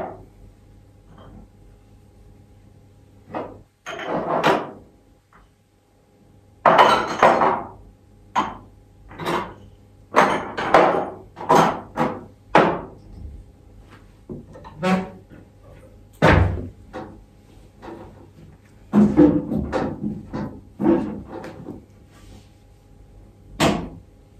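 Dishes and utensils clink and knock close by.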